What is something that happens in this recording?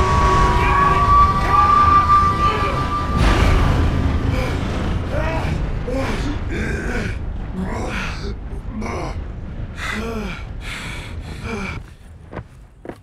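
A steam train rumbles loudly past close by and slowly fades away.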